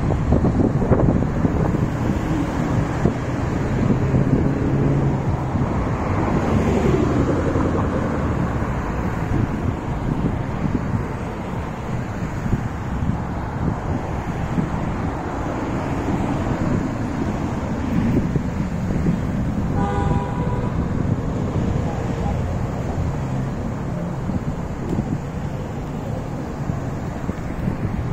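Cars rush past close by on a busy road.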